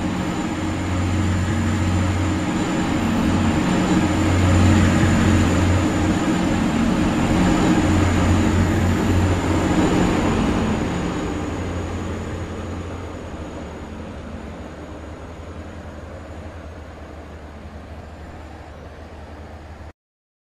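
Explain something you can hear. A diesel train engine rumbles loudly as a train passes by, then fades into the distance.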